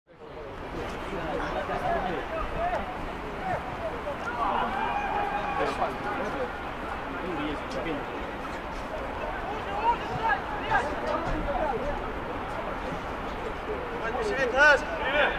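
Many men's voices chatter and call out outdoors.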